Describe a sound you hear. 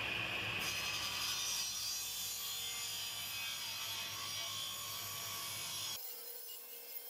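A wood planer shaves a board with a loud rasping roar.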